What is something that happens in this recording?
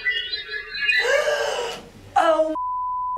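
A young woman shrieks in fright close by.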